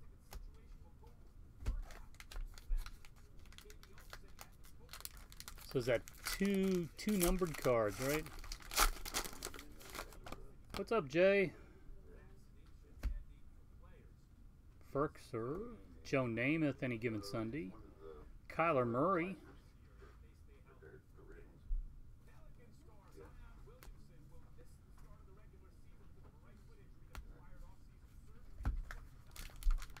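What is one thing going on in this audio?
Trading cards slide and flick against each other.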